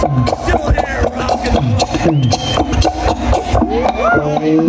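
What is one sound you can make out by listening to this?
Drums pound a fast beat through loudspeakers.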